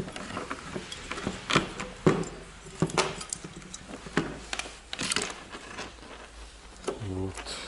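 Hard plastic parts click and knock together as hands handle them.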